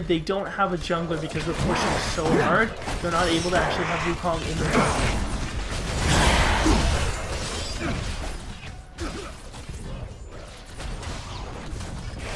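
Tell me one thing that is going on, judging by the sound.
Energy blasts and impacts crackle and thud in a game battle.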